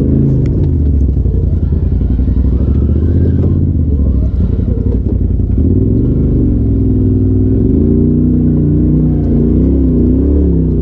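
Tyres crunch over rocks and loose dirt.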